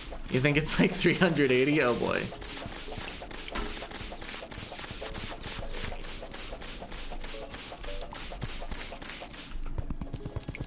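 Rapid magical shots fire in quick bursts.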